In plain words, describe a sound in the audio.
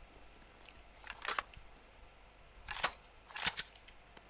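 Gear rustles and clicks as items are picked up.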